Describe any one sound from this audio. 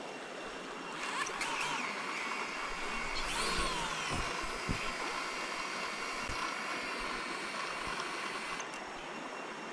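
A small drone's motors whine, rising and falling in pitch, then settle to a steady high hum.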